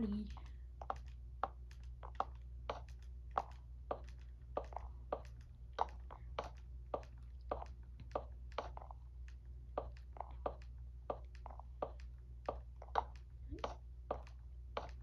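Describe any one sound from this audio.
A game plays short soft thuds of blocks being placed in quick succession.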